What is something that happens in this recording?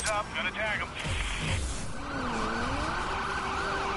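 A car crashes into metal with a loud bang.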